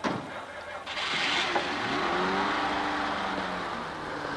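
A car engine starts and idles.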